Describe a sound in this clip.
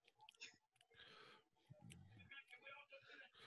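A man laughs softly over an online call.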